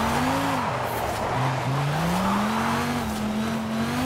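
Tyres screech as a car drifts and skids.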